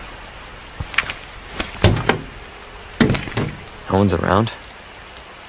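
A fuel nozzle clicks and clanks.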